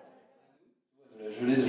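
A young man reads aloud into a microphone.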